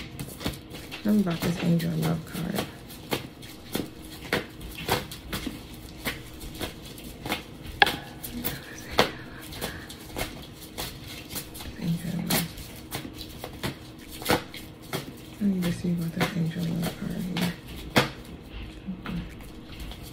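Cards shuffle and tap against each other.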